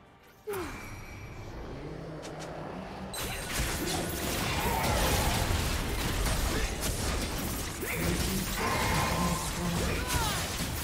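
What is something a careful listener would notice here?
Game spell effects and attacks crash and whoosh during a fight.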